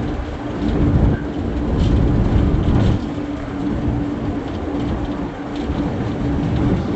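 A diesel locomotive engine rumbles and hums steadily close by.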